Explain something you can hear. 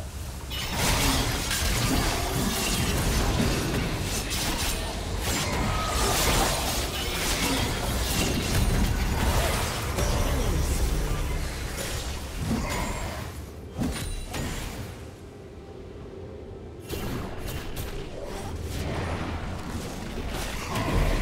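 Game spell effects whoosh, crash and zap in a busy fight.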